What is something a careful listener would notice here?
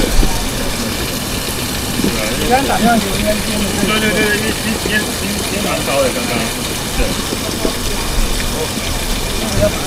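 Rain and wind make a steady noisy rush outdoors.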